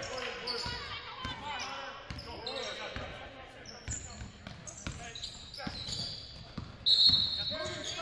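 A basketball thumps on the floor as it is dribbled.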